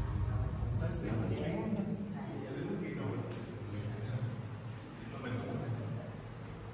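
Bare feet shuffle and step on a wooden floor.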